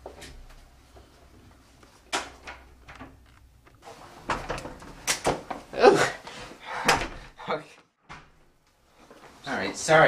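A door opens and shuts.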